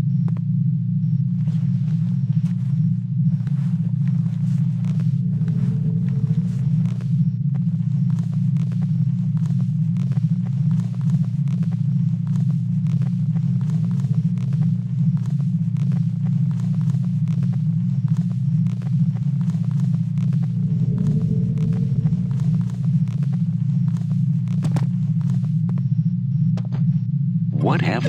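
Hands and feet tap quickly on a metal ladder.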